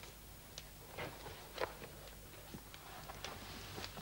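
A book is set down on a table with a knock.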